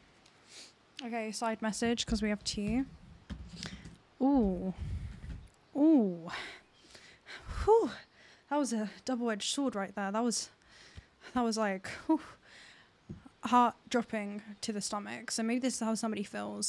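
A young woman speaks closely into a microphone with animation.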